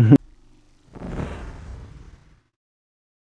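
A man laughs loudly.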